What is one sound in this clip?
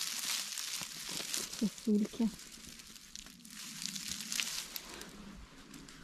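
Dry grass rustles and crackles as a hand pushes through it.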